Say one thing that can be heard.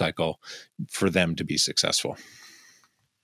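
A man speaks with animation into a close microphone over an online call.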